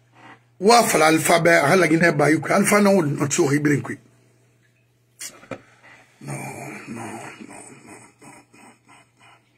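A man speaks emphatically close to a phone microphone.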